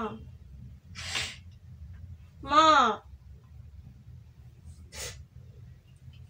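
A young woman sobs with sharp, breathy gasps.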